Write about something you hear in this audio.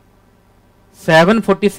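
A young man speaks loudly into a close microphone.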